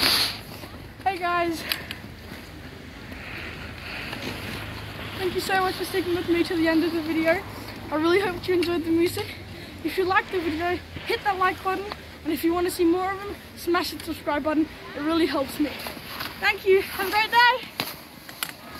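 A teenage boy talks cheerfully, close by.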